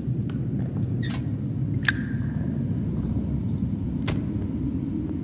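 A metal lighter clicks open and is struck.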